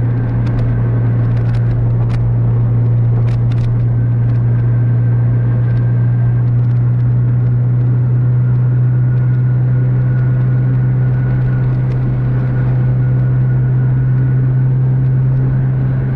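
Tyres roll on a smooth road with a steady rush.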